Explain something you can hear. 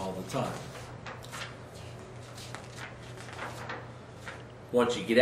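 Paper rustles as a man handles sheets.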